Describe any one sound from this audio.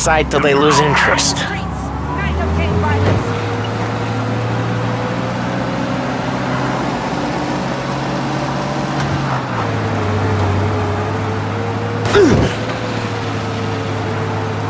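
An old car engine hums steadily as the car drives along.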